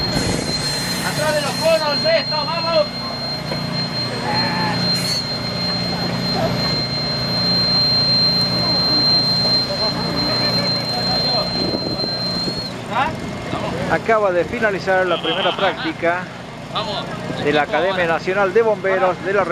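Men talk with animation close by, outdoors.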